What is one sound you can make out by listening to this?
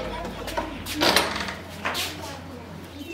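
A wooden door knocks shut.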